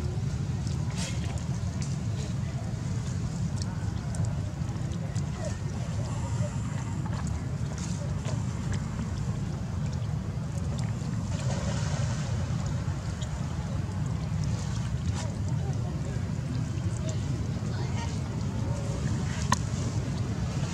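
A baby monkey squeaks softly close by.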